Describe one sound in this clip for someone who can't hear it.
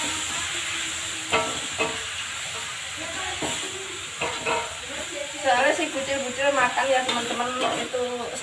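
A spatula scrapes and clinks against a metal wok.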